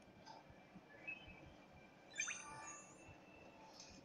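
A magical shimmering chime rings out as an item is crafted.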